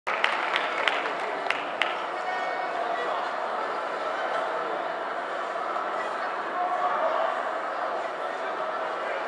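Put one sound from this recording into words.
A band plays live music loudly in a large echoing hall.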